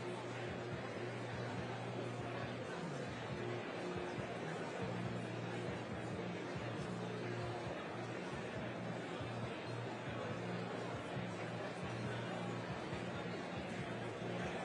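An audience chatters in a large hall, with many voices murmuring at once.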